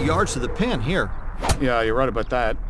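A golf club strikes a ball.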